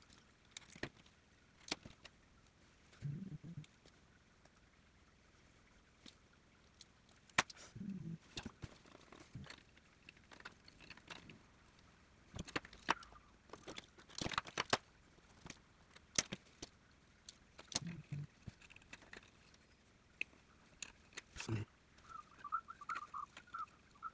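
Plastic parts click and knock as a hand handles them on a table.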